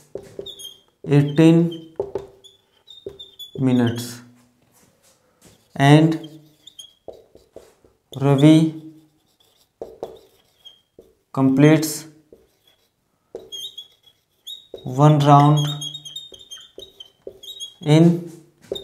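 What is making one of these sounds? A young man explains steadily in short phrases, close to a microphone.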